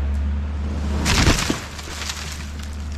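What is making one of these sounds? A tree creaks and crashes to the ground.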